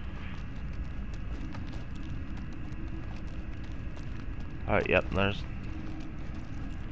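Footsteps crunch steadily on loose gravel.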